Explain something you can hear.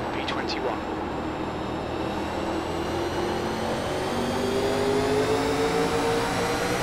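A race car engine roars steadily and slowly rises in pitch.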